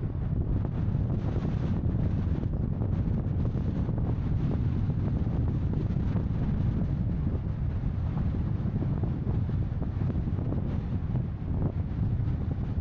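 A vehicle's engine rumbles steadily while driving.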